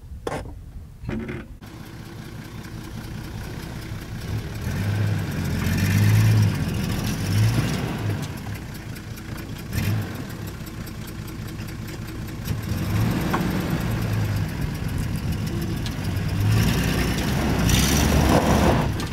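A vehicle engine rumbles steadily nearby.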